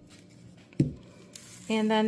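A plastic bottle knocks lightly against a hard surface as it is picked up.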